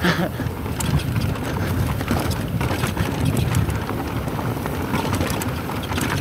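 A mountain bike rattles and clicks over bumps.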